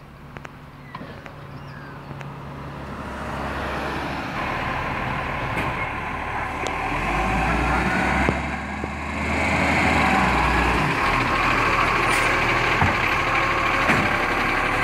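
A truck engine rumbles nearby, growing louder.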